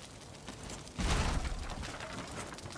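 A heavy wooden object thuds down onto stone.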